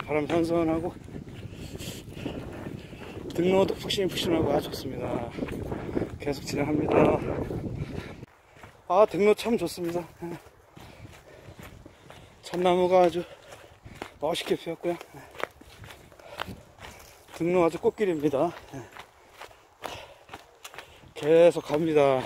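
Footsteps crunch through dry leaves on a dirt path.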